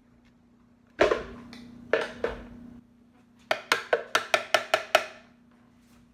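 A blender jar knocks and clatters against its base.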